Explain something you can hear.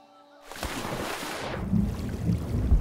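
Water churns and bubbles underwater.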